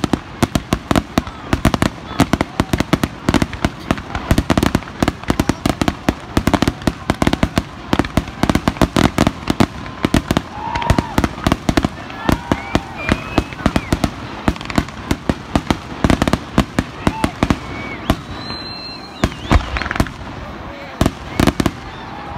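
Fireworks burst with deep booms.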